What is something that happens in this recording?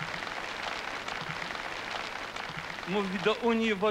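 A large crowd applauds loudly in a big hall.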